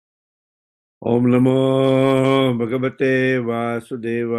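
A man chants in a steady, drawn-out voice over an online call.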